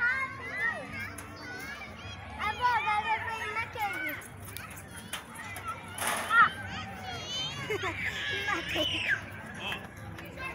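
A young girl talks and calls out excitedly close by.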